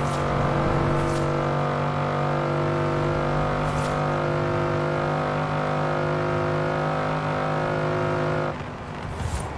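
A car engine roars steadily at high speed, then drops off.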